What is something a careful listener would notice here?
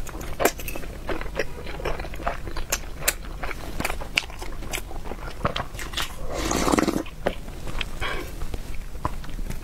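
A young woman chews soft food wetly and smacks her lips close to a microphone.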